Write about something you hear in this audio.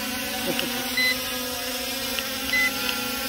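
A remote controller beeps twice.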